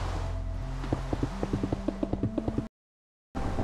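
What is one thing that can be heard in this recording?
Blocks thud softly as they are placed, one after another.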